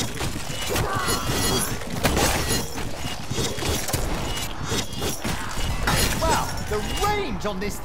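An energy gun fires with crackling blasts.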